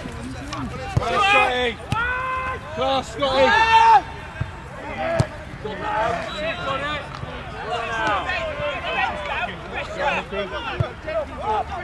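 A football is kicked with a dull thud.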